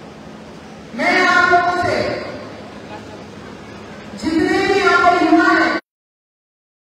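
A woman speaks loudly through a microphone and loudspeakers in a large echoing hall.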